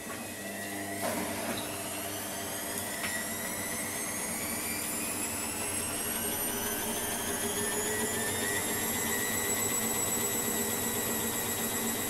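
A washing machine spins up, its whine rising steadily in pitch.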